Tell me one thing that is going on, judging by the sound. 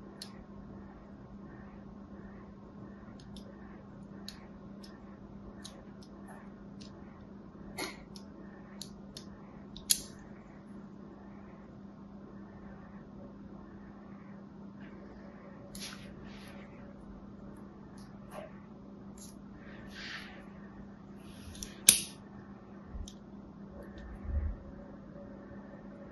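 A blade scratches and scores a bar of soap with soft, crisp clicks.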